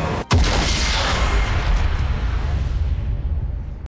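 A triumphant fanfare swells and fades.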